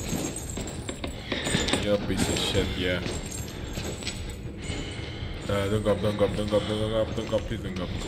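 Heavy footsteps thud on a hard floor and move away.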